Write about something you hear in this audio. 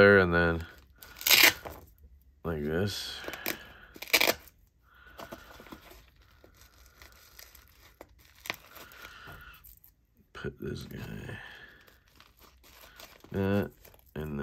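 Hook-and-loop patches rip off and press onto fabric with short scratchy rasps.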